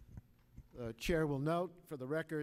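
A man speaks loudly and with animation through a microphone in a large room.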